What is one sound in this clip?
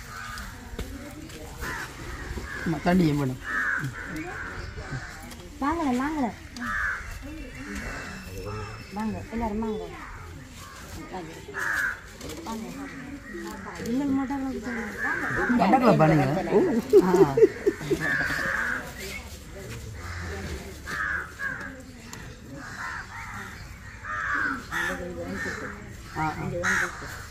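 Adult women and men talk and chatter nearby outdoors.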